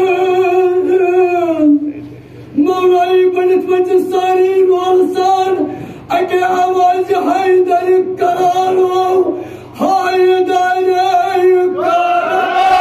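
A man sings a slow, mournful chant in long phrases with short pauses.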